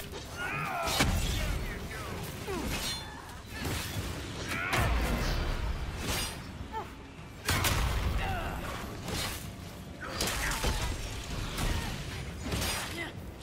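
Magic spells crackle and burst with loud booms.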